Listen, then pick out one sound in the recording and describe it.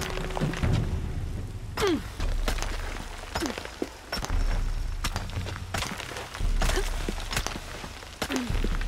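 Hands and feet scrape and knock against rock while climbing.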